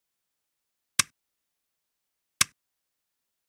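Short electronic menu clicks sound twice.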